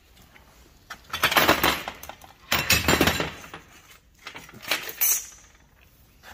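Heavy metal parts clank and scrape as they are handled.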